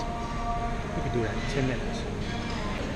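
A man speaks briefly and casually close by.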